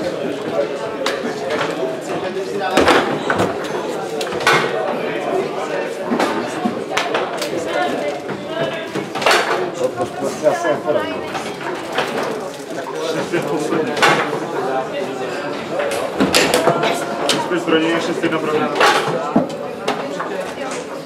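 A ball clacks against the sides and players of a table football game.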